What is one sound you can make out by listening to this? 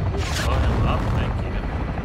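A loud explosion booms.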